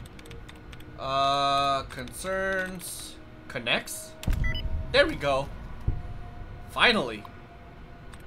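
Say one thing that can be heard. A computer terminal gives out a series of electronic beeps and chirps.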